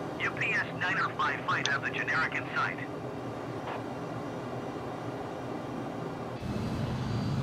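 A jet engine hums steadily inside a cockpit.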